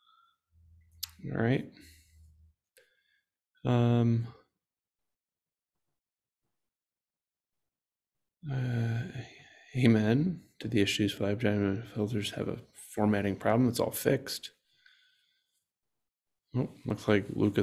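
A young man talks calmly into a microphone, in pauses.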